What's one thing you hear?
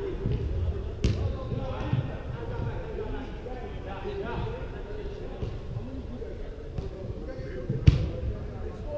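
A football is kicked with sharp thuds that echo around a large hall.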